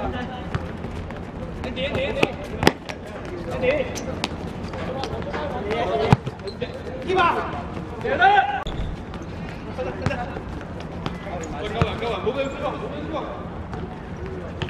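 A football is kicked on a hard outdoor court.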